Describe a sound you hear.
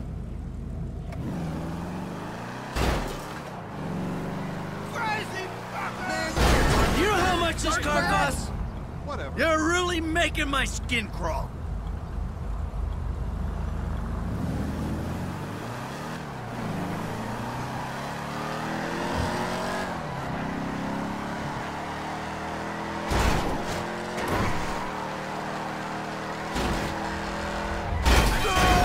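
A car engine revs loudly, rising and falling.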